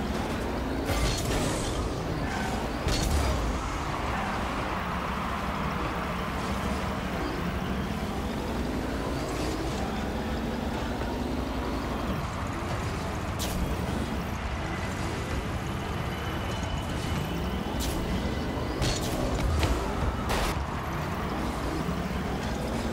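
A game car's engine hums and revs up and down.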